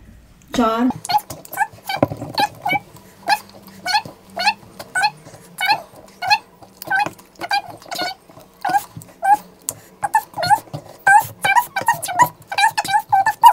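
Crisp hollow snacks crack and tap as fingers handle them.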